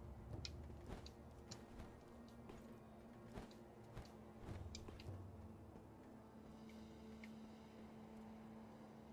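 A rope whirs through the air.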